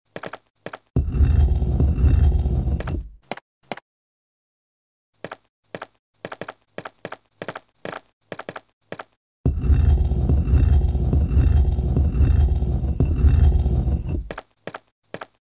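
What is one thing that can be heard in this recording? A heavy stone statue scrapes and grinds across a stone floor.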